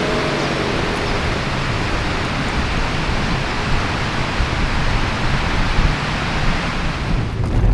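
A car drives slowly away over gravel.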